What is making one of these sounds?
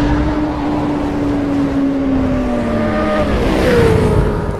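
A motorcycle engine roars and its pitch slowly drops.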